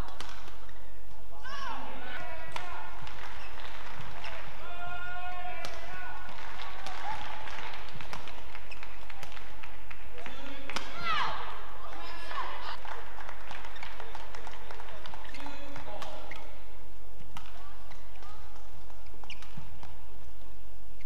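A shuttlecock is struck sharply by rackets in a fast rally.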